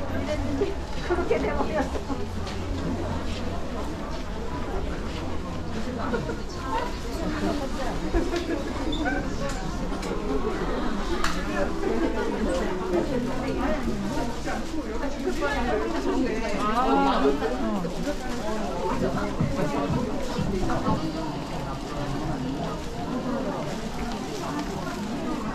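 A crowd of shoppers chatters all around in a large indoor space.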